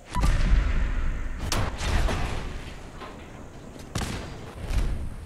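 A revolver fires loud shots.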